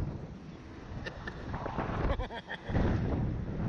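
A middle-aged man laughs close by.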